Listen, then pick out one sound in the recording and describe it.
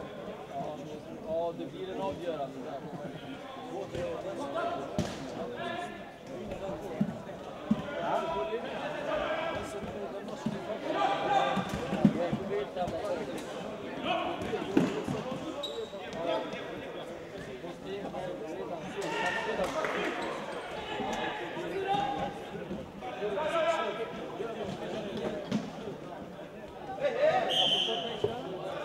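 Young men shout to each other from across a large echoing hall.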